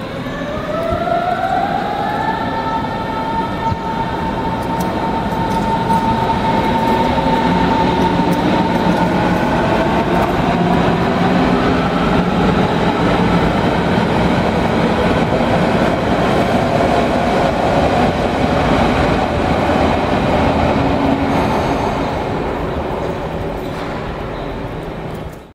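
An electric train hums and whines as it rolls into a large echoing station.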